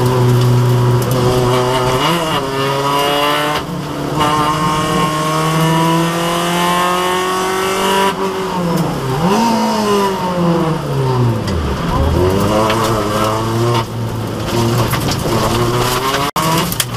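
Tyres rumble and hiss on a wet road.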